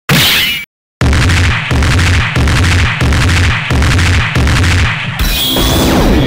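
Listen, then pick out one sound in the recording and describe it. Rapid punches and kicks land with heavy thuds in a fast combo.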